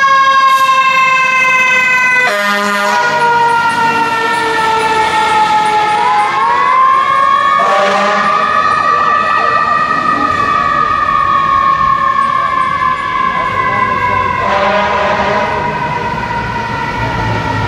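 A fire engine's siren wails loudly, slowly rising and falling in pitch.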